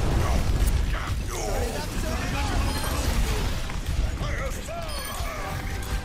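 Video game explosions boom and crackle.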